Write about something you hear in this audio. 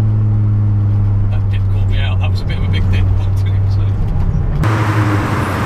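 A car engine drones steadily from inside the cabin.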